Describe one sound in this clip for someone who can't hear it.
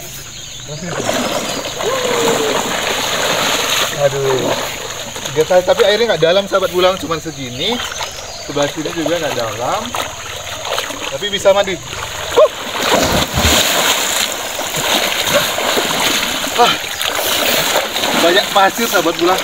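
Water splashes as a young man wades through a shallow river.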